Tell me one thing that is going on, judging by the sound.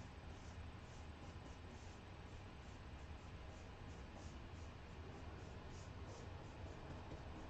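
A brush softly strokes across a canvas.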